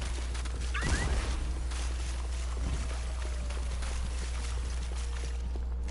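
A futuristic energy weapon fires with crackling shots.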